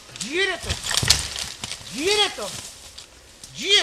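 A horse pushes through rustling leafy undergrowth.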